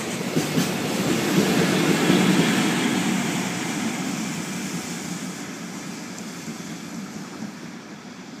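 A locomotive engine hums loudly as it passes and fades.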